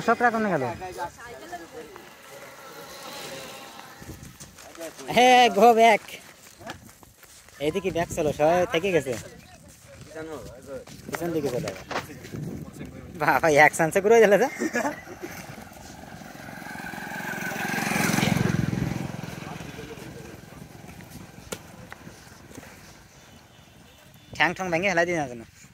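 Young men talk and laugh with animation close by, outdoors.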